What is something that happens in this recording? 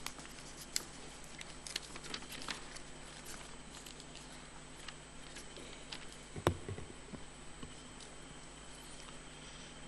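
Fabric rustles softly as a man unfolds a cloth.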